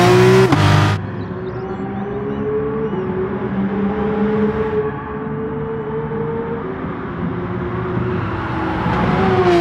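A race car engine drones steadily while driving at speed, rising and falling through gear changes.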